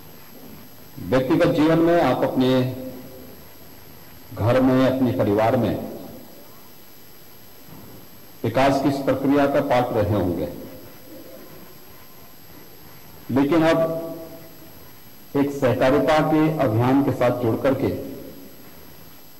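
A man speaks slowly and forcefully into a microphone, in bursts with long pauses, his voice echoing in a large hall.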